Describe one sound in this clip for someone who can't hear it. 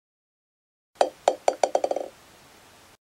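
A small ball bounces several times, the bounces coming faster and quicker until they stop.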